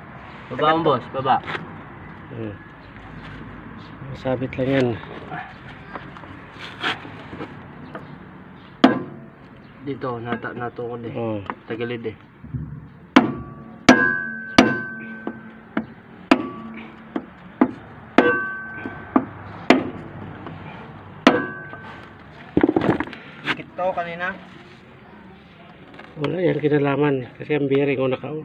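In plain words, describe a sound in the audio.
Heavy metal parts clank and knock.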